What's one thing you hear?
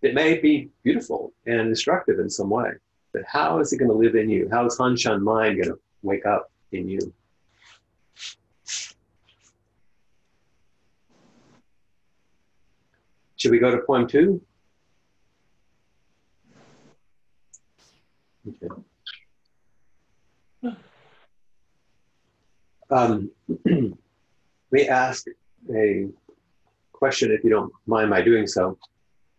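An older man speaks calmly and slowly, with long pauses, heard through a microphone over an online call.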